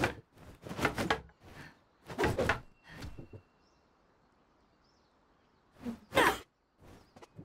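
Swords clack together in sharp knocks.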